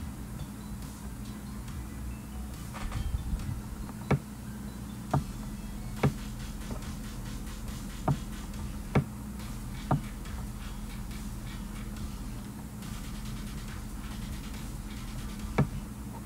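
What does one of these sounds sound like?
A young man speaks quietly into a computer microphone.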